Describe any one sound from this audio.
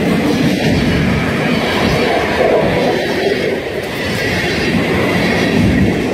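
Steel wheels screech on the rails.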